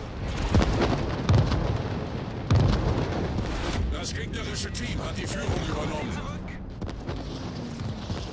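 Heavy explosions boom and rumble.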